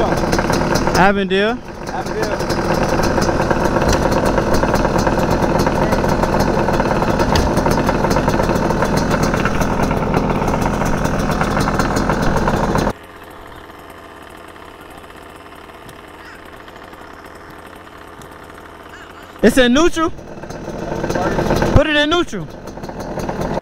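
A dirt bike engine revs sharply in short bursts.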